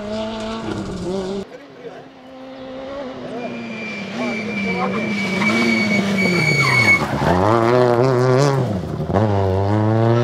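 Tyres crunch and spray gravel as a rally car slides through a bend.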